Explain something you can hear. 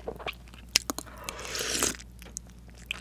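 A woman slurps a drink close to a microphone.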